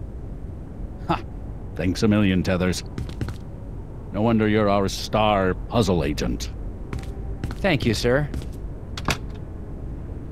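A second man answers gruffly.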